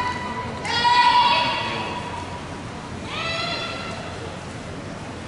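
Young women shout long, loud calls that echo through a large hall.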